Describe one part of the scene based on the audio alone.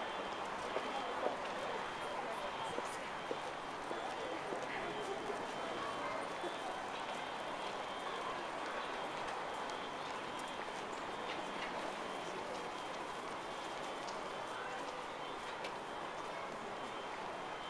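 Passers-by walk past with footsteps on paving nearby.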